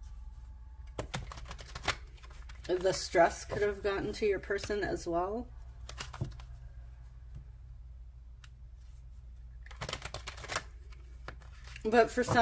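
Playing cards shuffle and tap softly.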